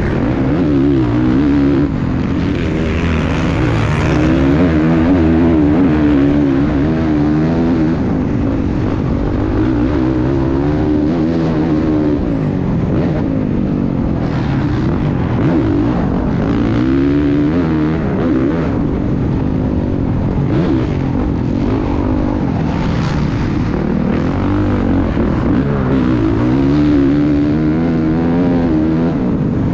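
Wind rushes hard past the rider.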